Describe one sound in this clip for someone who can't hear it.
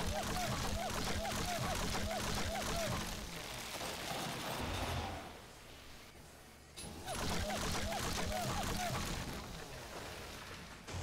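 A chainsaw buzzes as it cuts into wood.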